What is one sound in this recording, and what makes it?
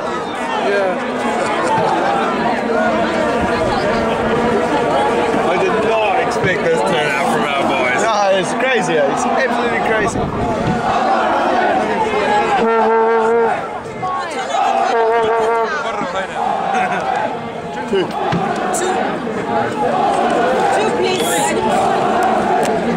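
A crowd of people talks and shouts loudly outdoors.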